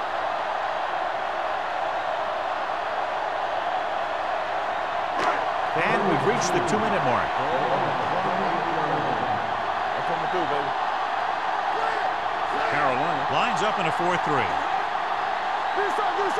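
A stadium crowd roars without a break.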